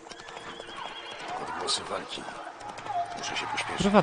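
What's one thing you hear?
A man speaks into a close microphone with animation.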